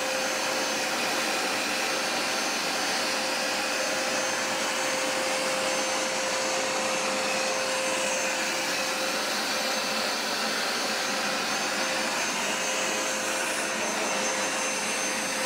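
A carpet cleaner's motor drones steadily with a constant whine.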